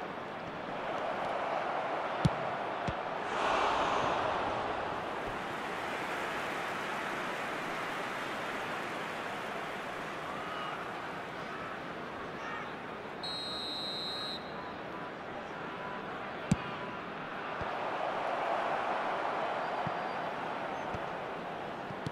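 A large stadium crowd roars and cheers steadily, swelling at times.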